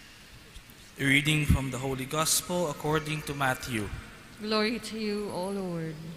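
A man reads aloud into a microphone in an echoing hall.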